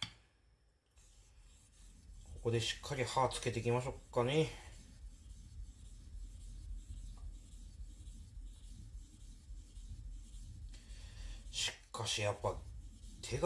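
A knife blade scrapes back and forth on a whetstone.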